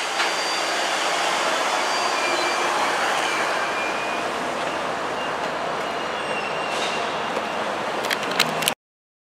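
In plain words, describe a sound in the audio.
A freight train rumbles and clatters steadily along the tracks.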